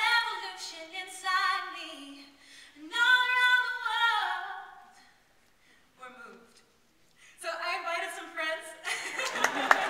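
A woman sings into a microphone in a large echoing hall.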